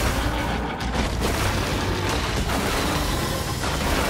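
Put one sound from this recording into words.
An explosion booms and debris scatters.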